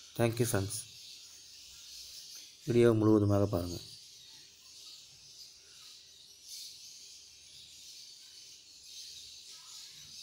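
Baby birds cheep softly in a nest.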